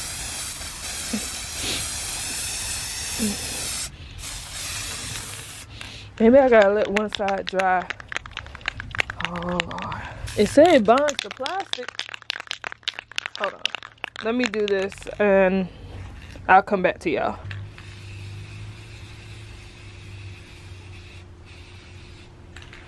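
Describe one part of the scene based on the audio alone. A spray can hisses in bursts.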